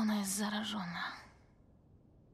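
A young girl speaks in an upset, shaky voice, close by.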